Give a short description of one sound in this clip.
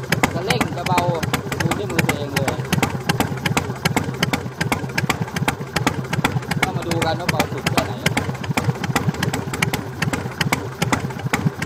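A Harley-Davidson Sportster V-twin idles with an uneven, loping beat.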